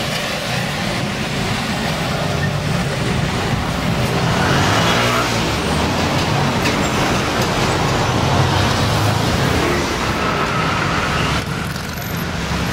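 Car engines hum as traffic passes along a city street.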